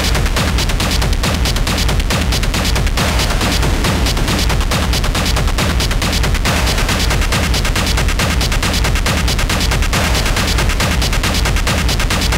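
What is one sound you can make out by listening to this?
Loud, harsh electronic music pounds with a fast, steady beat.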